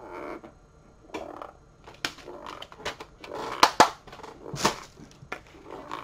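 A plastic case clicks and rattles in a man's hands.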